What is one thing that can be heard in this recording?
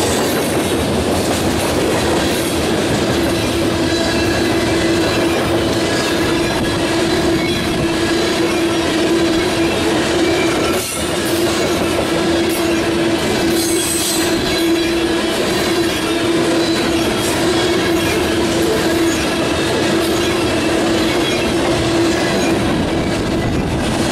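Steel wheels squeal steadily on the track.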